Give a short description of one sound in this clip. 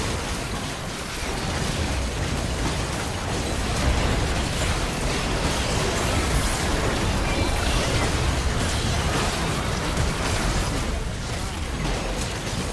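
Magic spells crackle and boom in a busy video game battle.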